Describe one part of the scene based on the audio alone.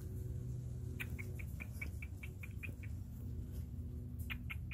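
A cockatiel chirps in a quick series of short calls.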